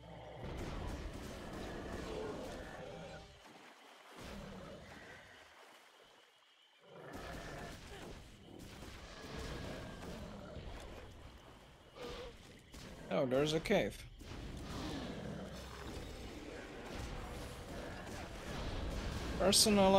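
Magic spells crackle and burst during a fight in a game.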